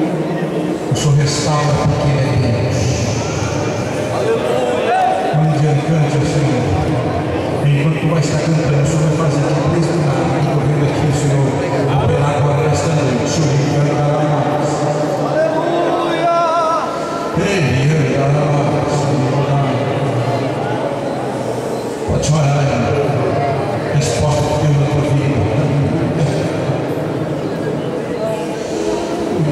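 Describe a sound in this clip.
A man preaches loudly and with passion through a microphone and loudspeakers in a large echoing hall.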